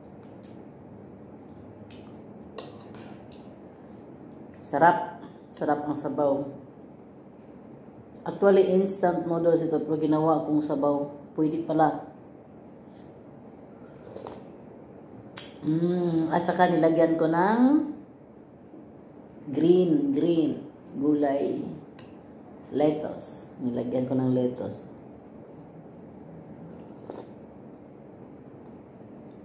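Cutlery clinks against a bowl.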